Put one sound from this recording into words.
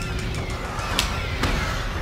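A gorilla roars and beats its chest.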